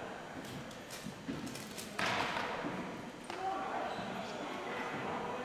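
Hockey sticks click and tap on a hard floor in a large echoing gym.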